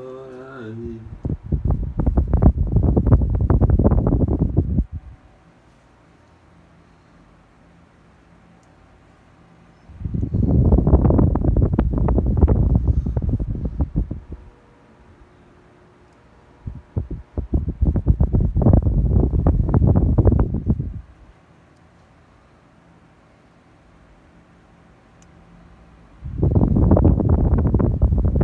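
Air from an electric fan buffets the microphone in gusts as the fan swings past.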